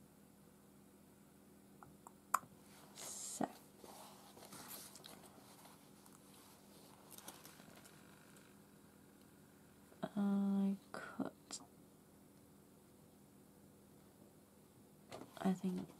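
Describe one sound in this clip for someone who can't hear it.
Fabric rustles softly as hands fold and press it.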